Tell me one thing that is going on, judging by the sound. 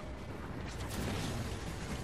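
A loud energy blast bursts nearby.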